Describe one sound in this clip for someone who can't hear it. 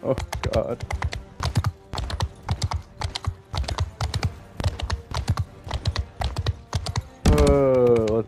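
Horse hooves clop quickly and evenly on hard ground.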